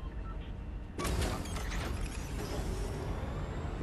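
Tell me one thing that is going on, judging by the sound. A flying craft's engine bursts into a loud whoosh as it lifts off.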